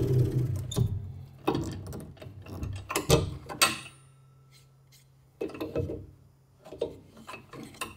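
A wooden block knocks lightly on a metal table.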